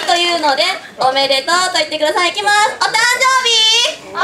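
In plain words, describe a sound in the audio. A young woman speaks brightly through a microphone.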